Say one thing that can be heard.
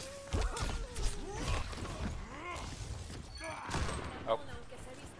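Weapons fire in short, sharp bursts.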